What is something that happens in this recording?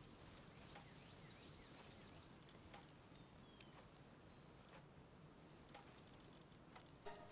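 Short, soft menu clicks sound every second or so.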